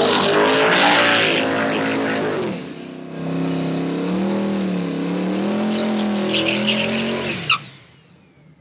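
A car engine revs loudly and roars.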